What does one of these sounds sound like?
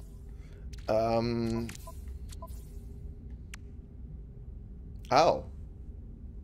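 Short electronic menu chimes sound.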